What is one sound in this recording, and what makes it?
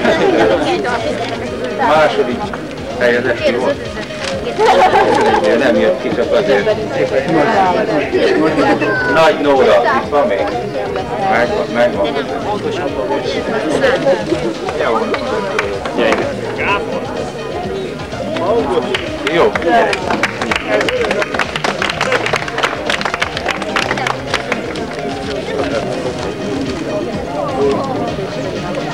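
A crowd chatters and murmurs nearby outdoors.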